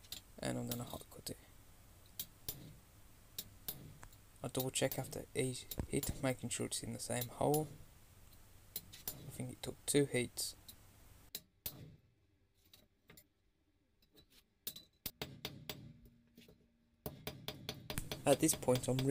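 A hammer strikes metal on an anvil with sharp ringing blows.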